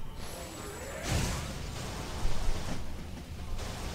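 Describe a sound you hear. An energy blast explodes with a fiery burst.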